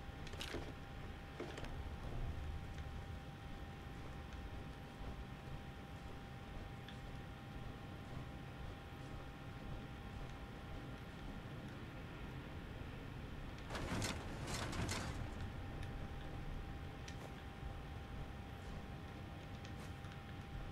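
Heavy metal footsteps thud steadily on a hard floor.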